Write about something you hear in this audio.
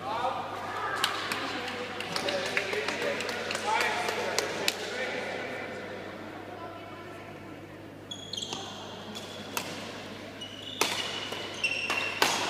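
Shuttlecocks are struck with rackets, each hit a sharp pop in a large echoing hall.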